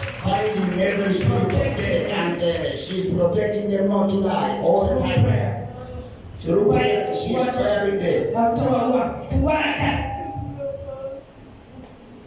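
A man speaks loudly and with fervour into a microphone, heard through a loudspeaker in a large echoing hall.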